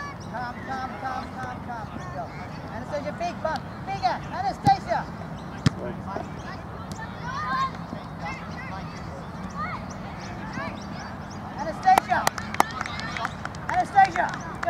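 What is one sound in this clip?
Young girls shout and call to each other on an open field.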